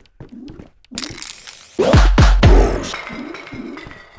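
A spray can hisses as paint sprays out.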